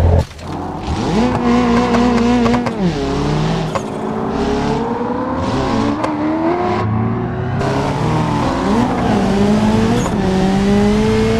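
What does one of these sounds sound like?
A car engine revs up and down through the gears.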